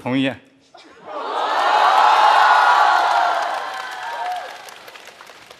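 An audience laughs loudly.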